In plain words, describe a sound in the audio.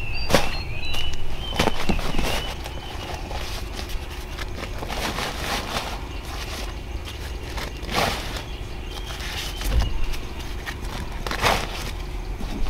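A plastic sack rustles and crinkles as corn cobs are packed into it.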